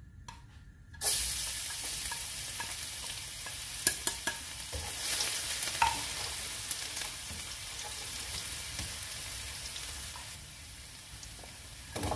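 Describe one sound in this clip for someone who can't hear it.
Oil sizzles loudly in a hot pan.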